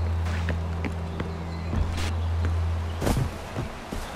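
A wooden crate smashes and splinters apart.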